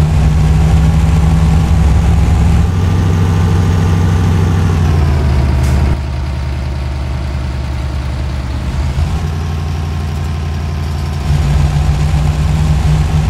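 A heavy truck engine rumbles steadily, its pitch shifting as it changes speed.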